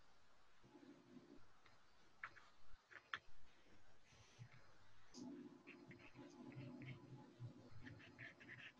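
A pencil scratches across paper in quick strokes.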